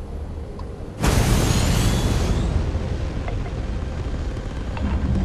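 A spaceship engine roars loudly as it boosts.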